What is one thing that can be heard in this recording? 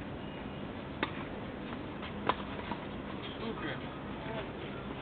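A tennis ball is struck with a racket, with sharp pops far off across an open court.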